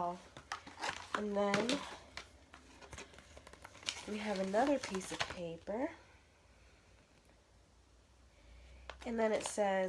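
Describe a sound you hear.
Paper rustles and crinkles in handling.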